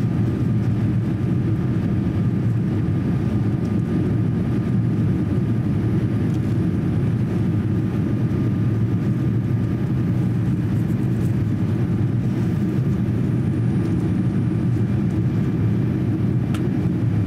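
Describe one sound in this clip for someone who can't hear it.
A jet airliner's engines roar steadily in flight, heard from inside the cabin.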